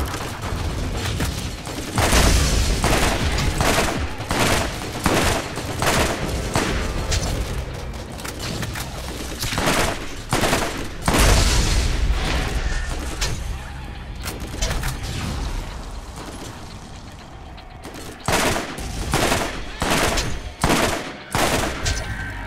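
Energy blasts crackle and burst.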